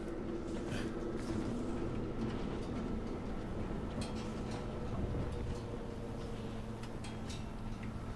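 Footsteps thud across a corrugated metal roof.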